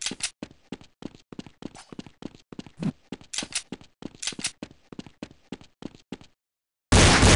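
Footsteps tap quickly and evenly on hard stone.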